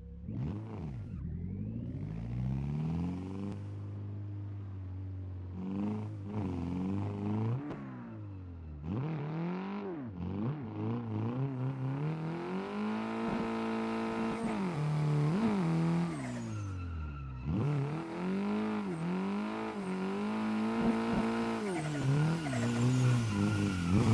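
A car engine revs hard, rising and falling in pitch as it shifts gears.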